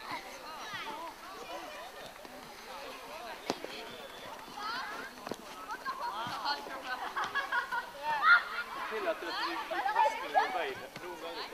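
Young children shout and squeal outdoors.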